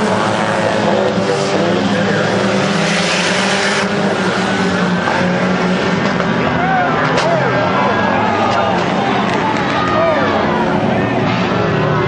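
Small race car engines roar at full throttle around a dirt track.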